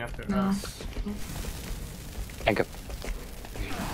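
A flare fizzes and crackles.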